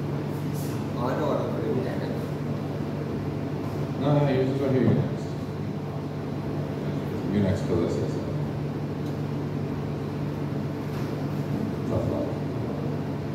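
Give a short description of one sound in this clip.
A young man speaks in bursts through a microphone and loudspeakers in an echoing hall.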